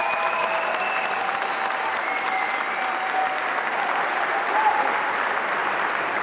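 A large crowd claps and cheers loudly.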